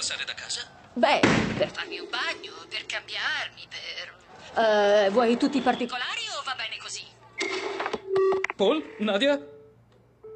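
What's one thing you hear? A man talks into a phone.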